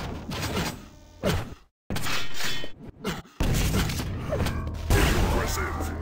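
Energy weapons fire in rapid bursts with a buzzing crackle.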